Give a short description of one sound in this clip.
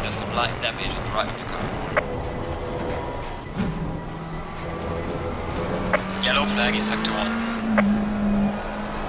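Tyres squeal through the corners.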